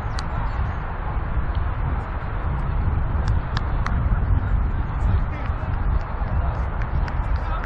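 Wind blusters into the microphone outdoors.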